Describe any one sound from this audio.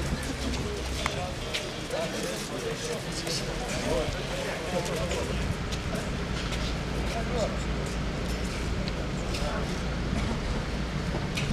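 Many footsteps shuffle and tap on paving stones.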